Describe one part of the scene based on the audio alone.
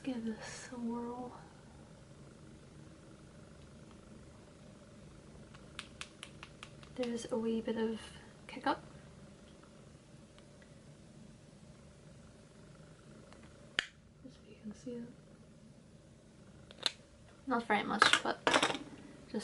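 A young woman talks calmly and close by, in short bursts.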